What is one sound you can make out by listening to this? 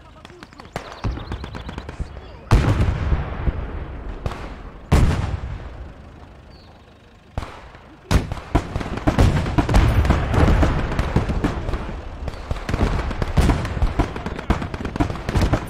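Heavy explosions boom and rumble one after another.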